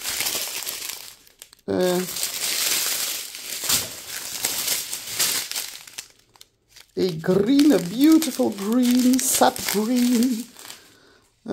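Plastic bags crinkle and rustle as hands handle them.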